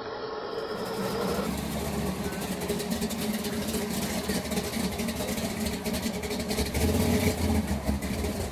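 A car engine rumbles and revs as the car rolls slowly forward.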